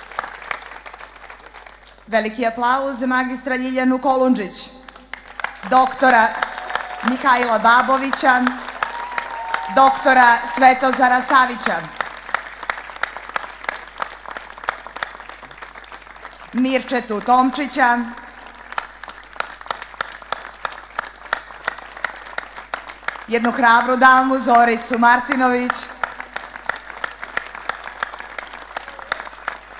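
A large crowd applauds and claps steadily outdoors.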